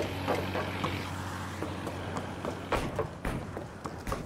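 Footsteps thud on a metal deck.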